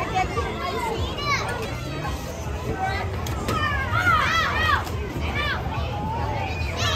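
Children shout and scream excitedly nearby, outdoors.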